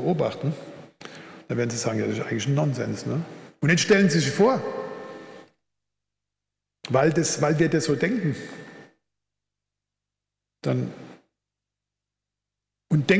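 An elderly man speaks calmly into a microphone in a large hall, pausing between phrases.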